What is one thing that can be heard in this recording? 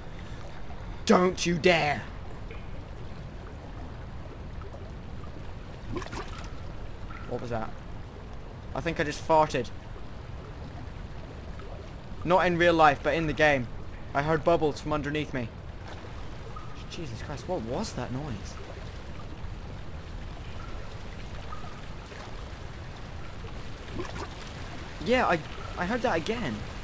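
A young man talks into a close microphone in short bursts, sometimes exclaiming.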